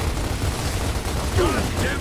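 Gunfire rattles from a video game.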